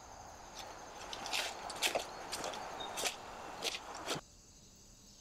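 Footsteps crunch on grass outdoors.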